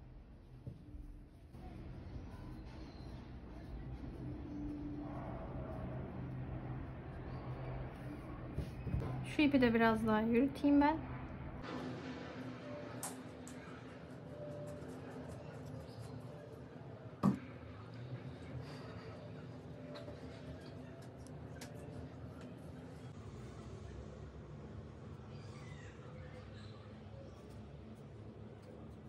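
Hands softly rustle fabric.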